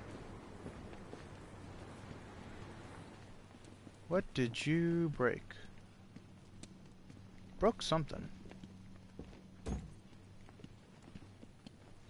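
Footsteps tread heavily on a hard metal floor.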